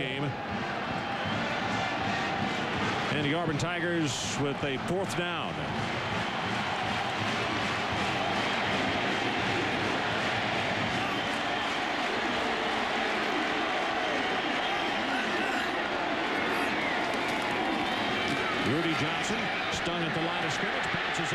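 A large crowd roars steadily in a big open stadium.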